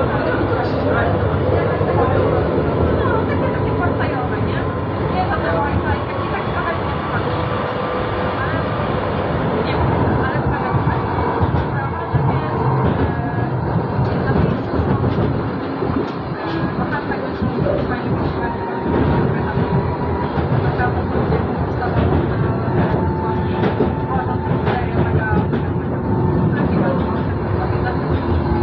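Tram wheels hum and whine on the track.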